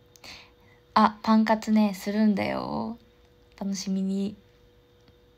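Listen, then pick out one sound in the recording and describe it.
A young woman sings a few notes softly, close to a microphone.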